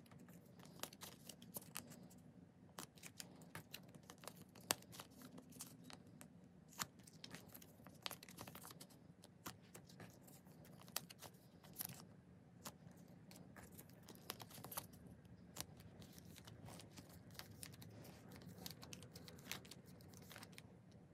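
Plastic cards click and tap against each other close by.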